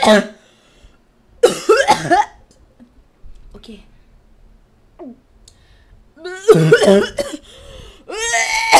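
A young woman talks animatedly into a close microphone, in short bursts.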